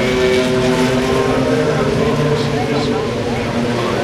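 An IndyCar race car speeds past on the track.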